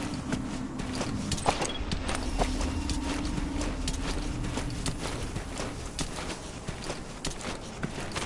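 A soldier crawls over rough dirt and gravel, scraping and rustling.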